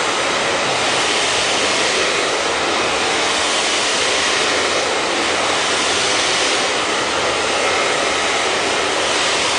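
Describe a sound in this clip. A hair dryer blows with a loud, steady roar close by.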